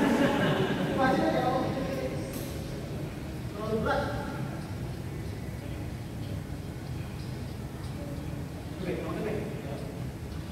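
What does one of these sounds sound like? Men call out to each other in a large echoing hall.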